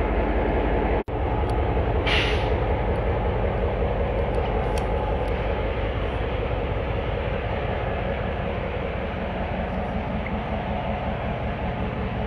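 Freight wagon wheels roll and clatter along rails.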